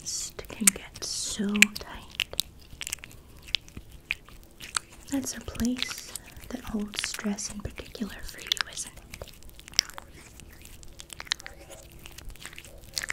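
Hands rub and tap close to a microphone.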